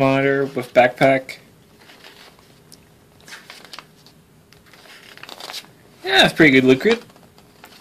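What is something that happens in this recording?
Glossy paper pages rustle as they are turned.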